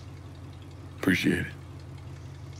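A young man speaks briefly in a low voice.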